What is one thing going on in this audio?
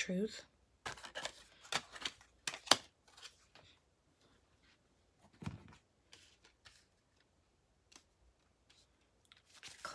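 Playing cards slap softly onto a wooden table.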